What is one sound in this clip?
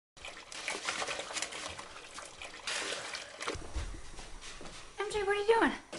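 Water splashes and dishes clink in a sink.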